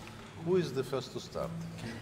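A crowd of men and women murmur and chatter in a large echoing hall.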